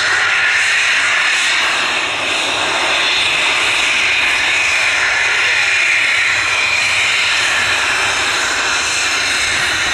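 A jet engine whines and roars steadily as a small plane taxis close by.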